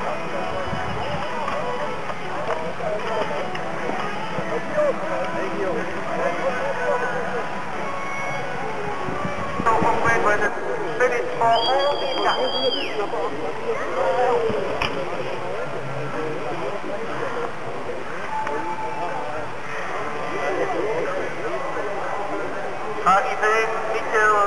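A crowd of spectators chatters and calls outdoors.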